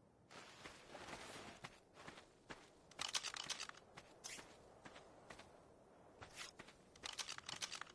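Footsteps run across grass.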